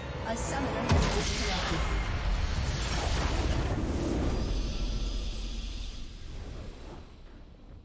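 A game's victory sound effect bursts with a magical whoosh and slowly fades.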